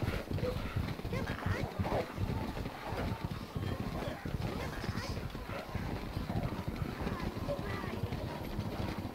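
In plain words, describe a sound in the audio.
Small creatures grunt and chatter.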